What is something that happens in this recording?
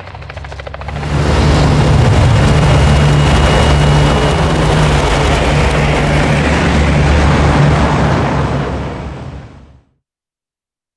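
Propeller aircraft engines roar loudly with a deep steady drone, then cut off.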